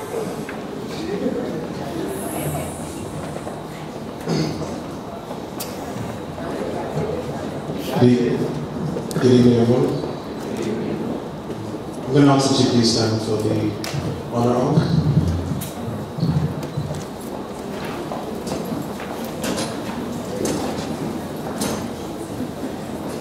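A young man speaks through a microphone into a room with a slight echo.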